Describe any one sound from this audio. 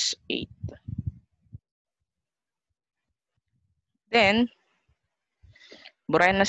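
A woman speaks calmly into a close microphone, explaining in short bursts with pauses.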